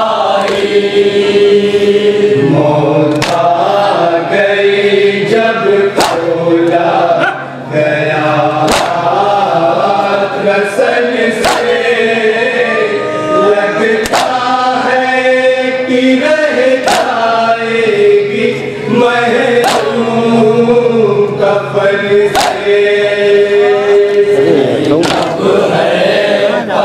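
A crowd of men chants together loudly.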